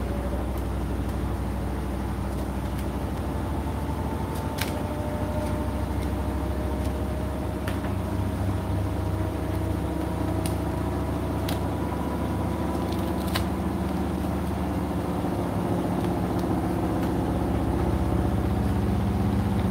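Water sloshes inside a turning washing machine drum.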